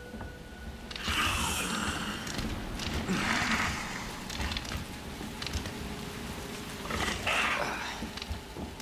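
A creature growls and snarls nearby.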